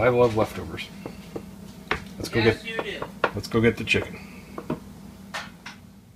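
A wooden spoon stirs thick sauce in a pan.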